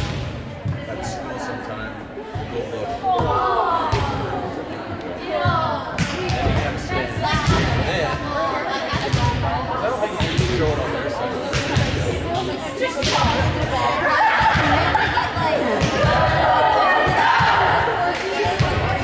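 Voices of players chatter and call out, echoing in a large hall.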